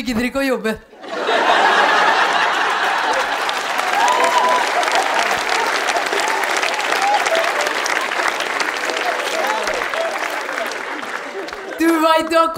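A large audience claps.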